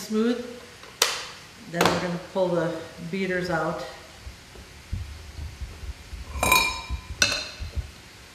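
A utensil clinks against a glass bowl.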